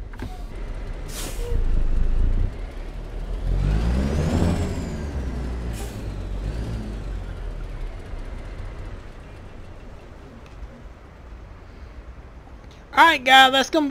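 A truck engine rumbles low and steadily, then quietens.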